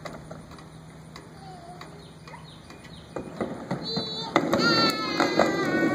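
Plastic wheels of a toy car roll down a plastic ramp with a clatter.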